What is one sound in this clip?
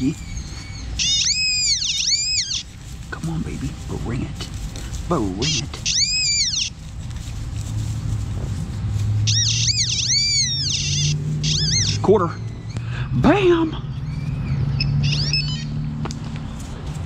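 A handheld metal detector gives out high, wavering electronic beeps in short bursts.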